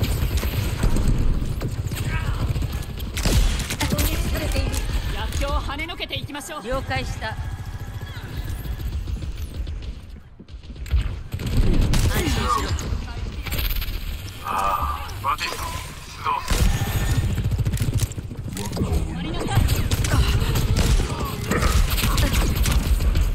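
A rifle fires shot after shot in quick bursts.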